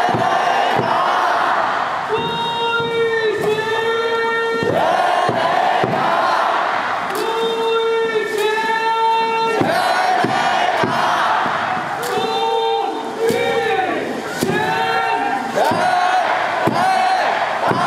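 A large crowd chants and cheers loudly.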